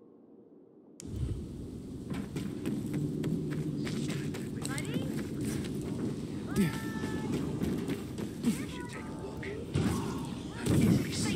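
Footsteps run quickly over dirt and wood.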